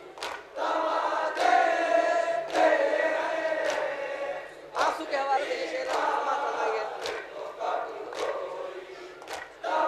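A group of men chant along in chorus.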